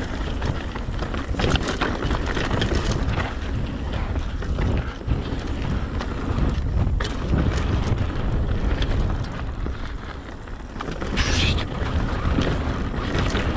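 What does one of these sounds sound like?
Wind buffets loudly past a moving rider.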